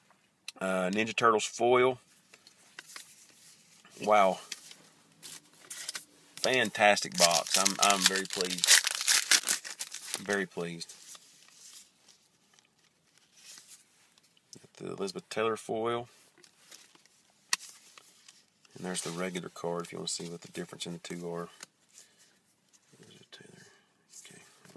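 Cardboard cards rustle and shuffle in a man's hands.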